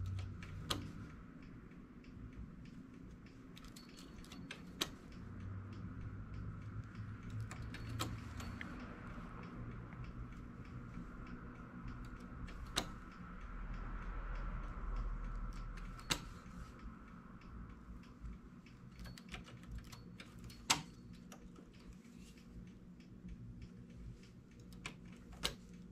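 Small metal needles click sharply as a hand tool moves them.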